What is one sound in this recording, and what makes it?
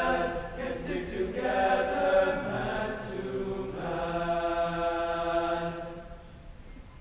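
A choir sings a held chord in a large hall.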